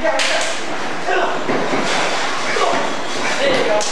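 A body slams down hard onto a mat.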